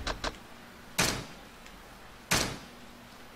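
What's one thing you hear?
Short electronic beeps sound.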